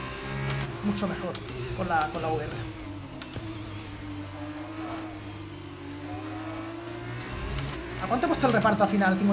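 A racing car engine whines and roars, shifting gears.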